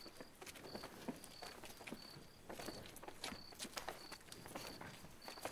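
Footsteps shuffle slowly on a hard floor.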